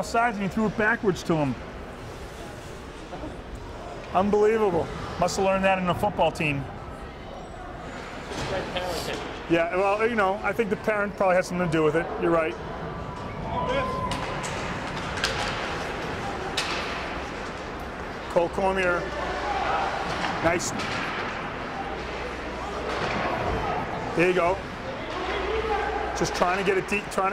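A crowd of spectators nearby shouts and cheers in an echoing rink.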